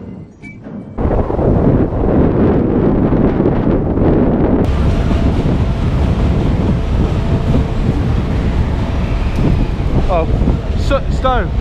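Wind blows hard outdoors, rumbling and buffeting.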